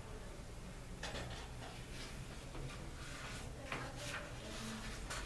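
Hands rustle and shuffle small objects on a tabletop.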